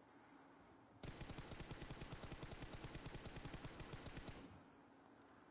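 An automatic rifle fires a rapid burst of shots.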